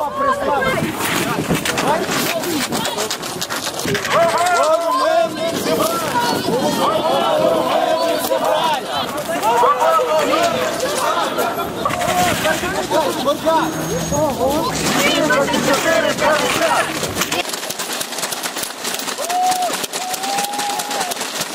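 A crowd of men and women talk and call out nearby, outdoors.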